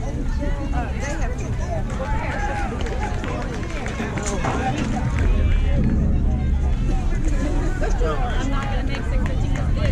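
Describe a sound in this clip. Young girls call out and cheer across an open field outdoors.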